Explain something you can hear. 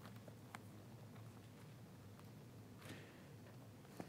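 Paper pages rustle as a man turns them.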